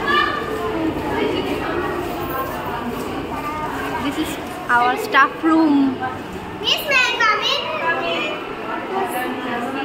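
Women chatter and laugh in a room.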